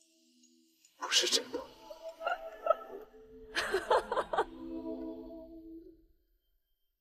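A young woman laughs brightly.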